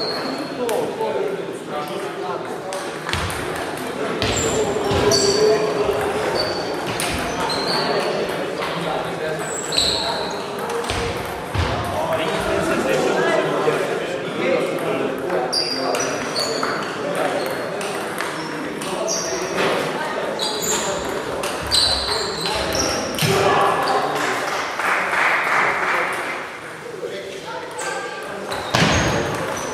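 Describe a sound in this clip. Table tennis balls click and bounce on tables in a large echoing hall.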